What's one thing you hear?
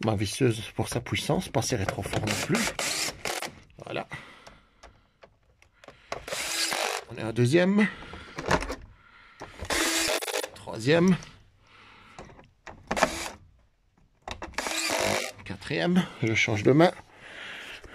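A cordless drill whirs in short bursts as it drives screws.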